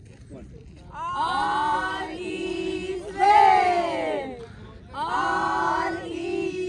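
A group of men and women sing together loudly outdoors.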